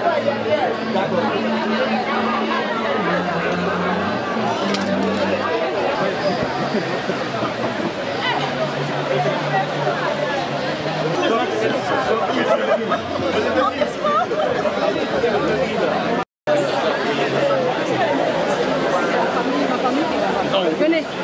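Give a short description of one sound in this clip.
A crowd of men and women chatters and talks all around outdoors.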